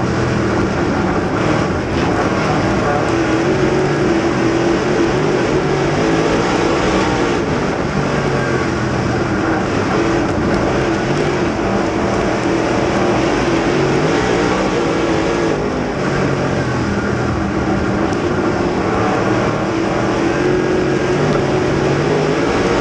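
Other race car engines roar nearby.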